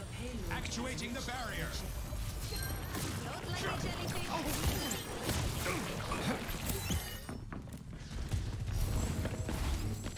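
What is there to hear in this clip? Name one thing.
Energy weapons fire in quick bursts.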